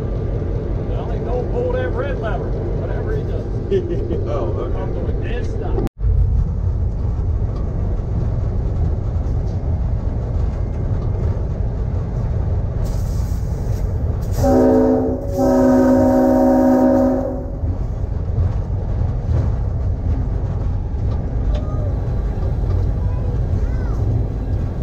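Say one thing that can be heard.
A diesel locomotive rumbles as it rolls along the track.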